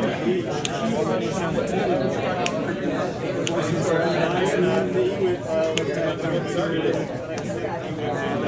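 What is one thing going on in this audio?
Playing cards are laid down on a table with soft taps.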